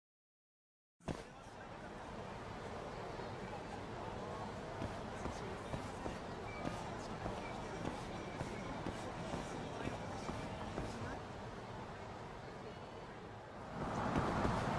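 A busy street hums with distant crowd murmur.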